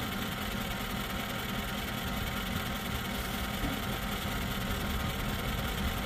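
A honey extractor's motor hums and whirs steadily.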